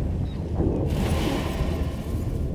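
A magical portal bursts open with a bright whoosh.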